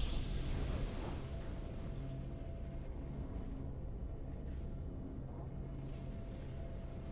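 A triumphant victory fanfare plays.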